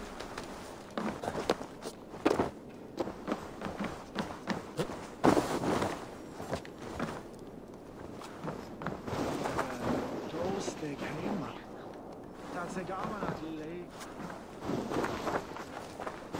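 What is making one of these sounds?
Footsteps crunch through snow and thud on wooden boards.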